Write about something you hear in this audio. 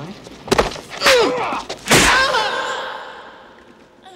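A young woman screams as she is thrown.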